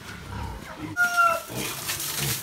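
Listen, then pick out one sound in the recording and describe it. A pig squeals sharply.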